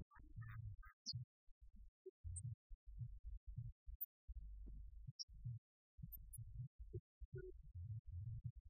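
A band plays loud music with drums and keyboard.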